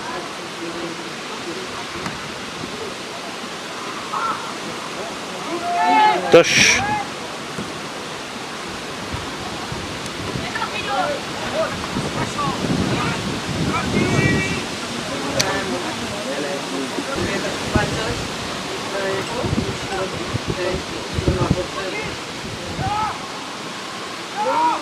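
Young male players shout to each other at a distance across an open field.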